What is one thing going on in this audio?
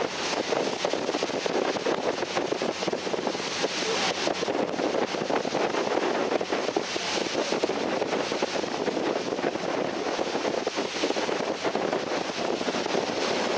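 A boat's engine drones steadily.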